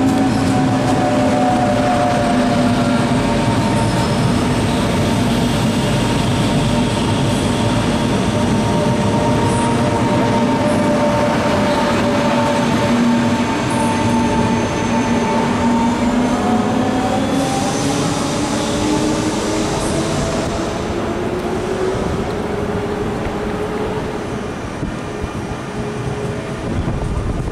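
An electric train rolls past close by with a steady rumble.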